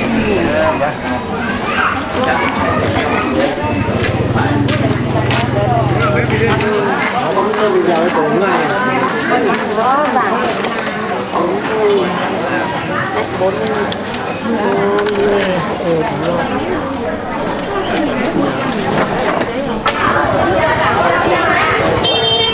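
A crowd chatters in the background.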